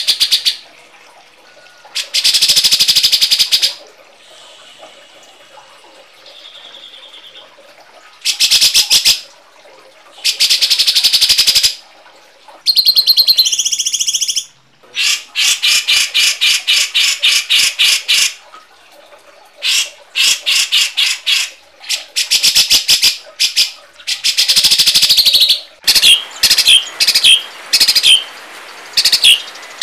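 Songbirds chirp and trill loudly in bursts.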